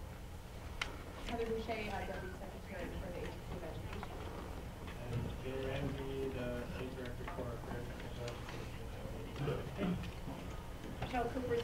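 A man speaks calmly to an audience, heard from a distance.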